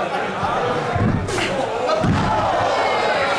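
Heavy thuds boom from the ring canvas.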